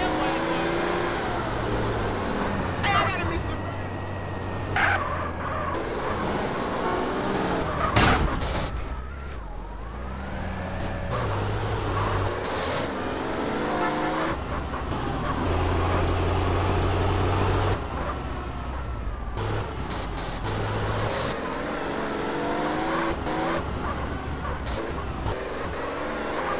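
A car engine roars and revs steadily.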